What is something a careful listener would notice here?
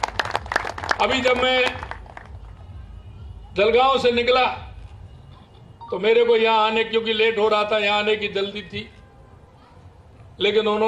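A man speaks slowly and loudly through a microphone, drawing out his words.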